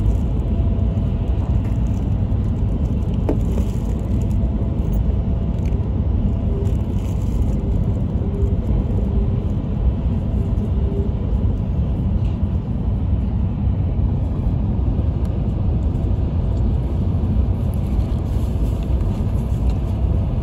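A train rumbles steadily along the track at speed.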